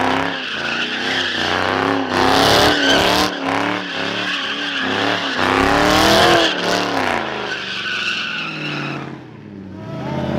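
A car engine revs hard and roars up and down.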